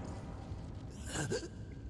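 A young man speaks briefly through a headset microphone.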